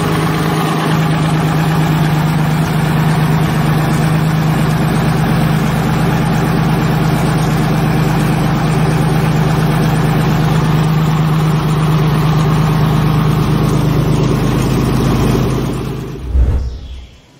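A large engine runs with a loud, steady, low drone.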